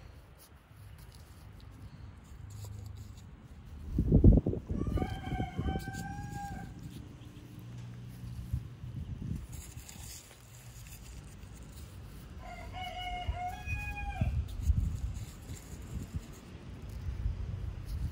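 Gloved fingers press and scrape through loose soil.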